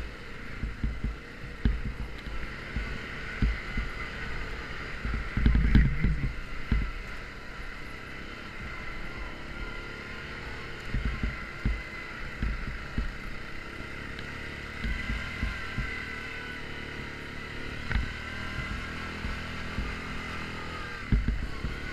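A quad bike engine drones steadily up close.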